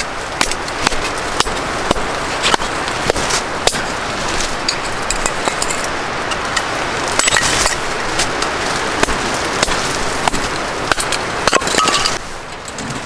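A hatchet chops into wood with sharp, regular knocks.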